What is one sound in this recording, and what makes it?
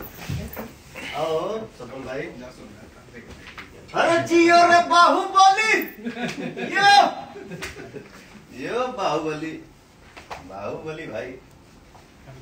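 Several men talk and call out loudly close by.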